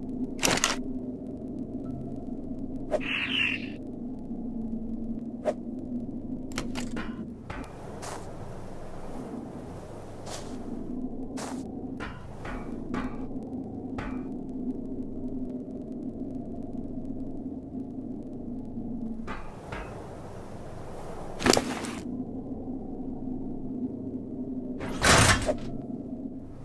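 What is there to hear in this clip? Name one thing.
Short game interface clicks sound as items are moved and placed.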